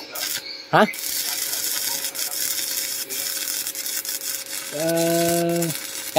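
An electric welding arc crackles and hisses steadily.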